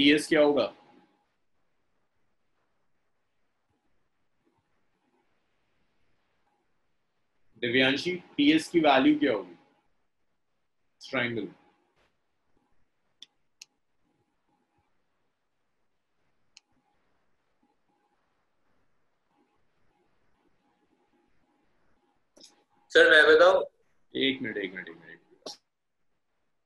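A young man speaks calmly through a microphone, in short bursts with long pauses.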